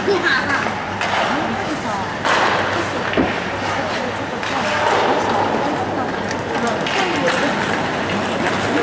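Spectators call out and cheer in an echoing rink.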